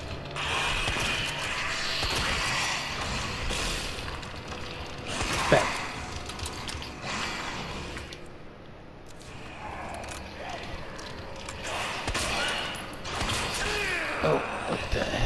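A creature growls and snarls.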